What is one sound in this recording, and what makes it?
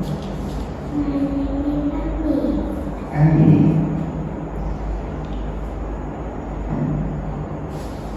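A man speaks calmly and clearly close by.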